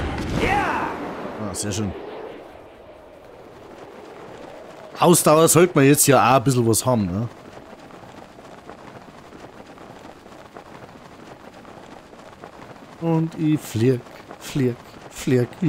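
Wind rushes steadily past during a long glide.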